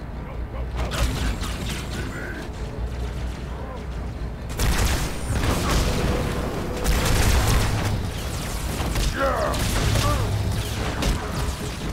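An energy sword swings with a crackling hum.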